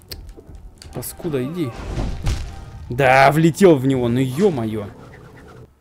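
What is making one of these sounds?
Sharp slashing blows and a heavy crash burst out.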